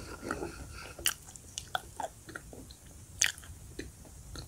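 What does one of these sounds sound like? Chalk crunches and snaps sharply up close.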